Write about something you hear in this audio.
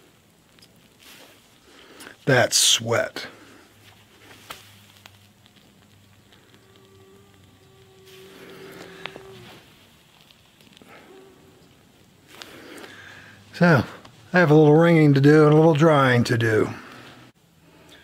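A middle-aged man talks close by, with animation.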